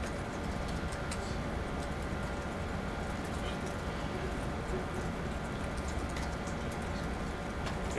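A man types on a laptop keyboard.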